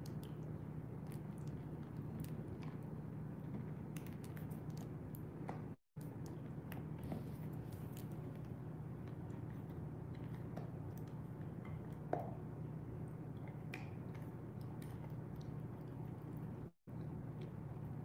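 A dog chews and gnaws on a toy close by.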